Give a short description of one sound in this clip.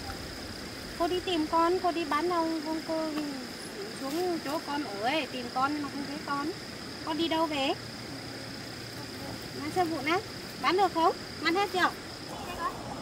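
A young woman talks calmly and gently up close.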